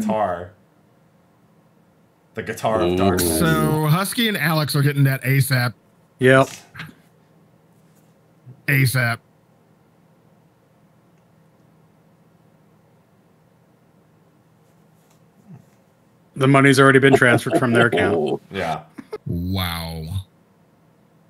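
Men talk with animation over an online call.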